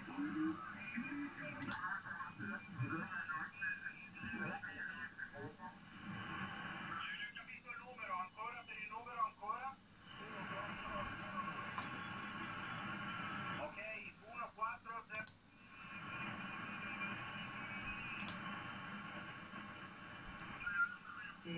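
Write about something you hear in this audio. Static hisses and crackles from a radio loudspeaker.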